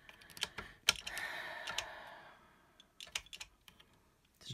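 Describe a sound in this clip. A dial on a sewing machine clicks as it is turned.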